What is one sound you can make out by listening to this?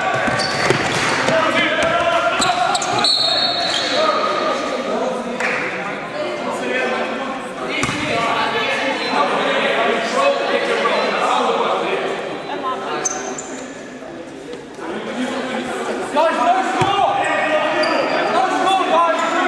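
Voices of players and spectators call out and chatter, echoing through a large hall.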